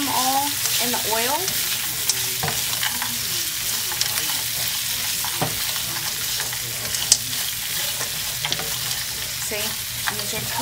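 A spatula scrapes and clacks against a pan.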